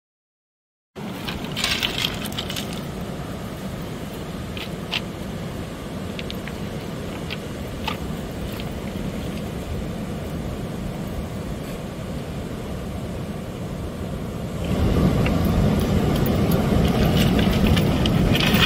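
Ocean waves break and wash steadily onto the shore.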